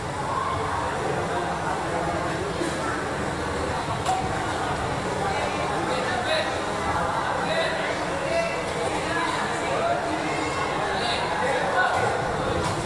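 A crowd of spectators chatters and shouts throughout.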